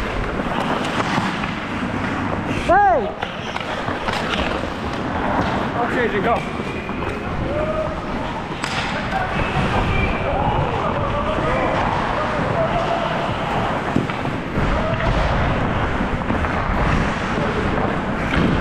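Hockey sticks clack against the puck and ice.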